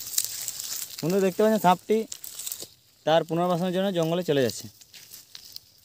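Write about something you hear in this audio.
A snake slithers through dry grass with a faint rustle.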